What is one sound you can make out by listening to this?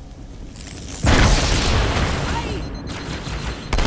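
A blast booms and roars.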